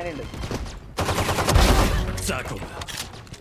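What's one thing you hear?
A gun fires a quick burst of shots close by.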